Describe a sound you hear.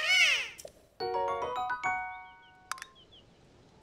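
A short bright chiming jingle plays.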